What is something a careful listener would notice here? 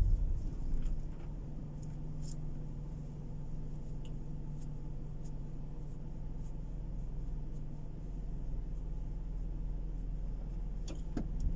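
A car engine idles quietly.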